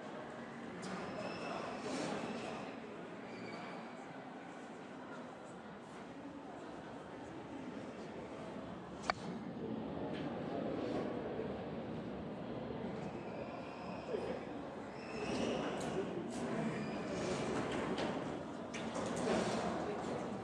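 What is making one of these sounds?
A crowd murmurs quietly nearby.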